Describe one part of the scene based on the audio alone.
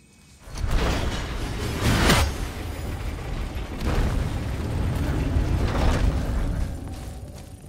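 A heavy wooden wheel grinds and rumbles as it turns.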